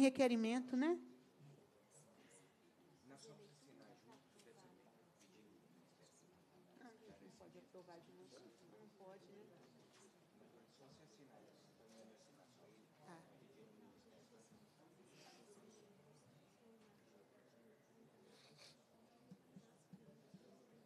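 Several people murmur and talk quietly at a distance in a large room.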